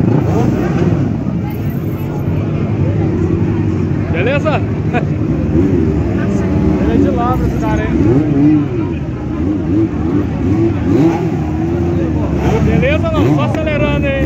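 Motorcycle engines rumble and idle nearby.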